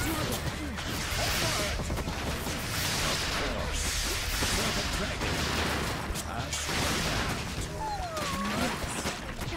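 Magic blasts burst with whooshing roars.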